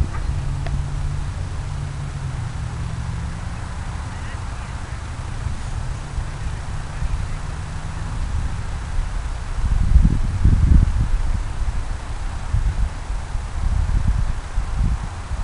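Wind buffets the microphone outdoors, gusting harder toward the end.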